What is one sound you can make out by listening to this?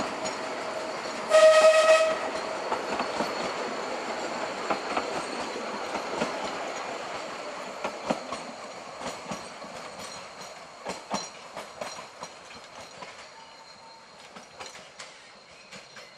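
Narrow-gauge railway carriages clatter over rail joints as they move away.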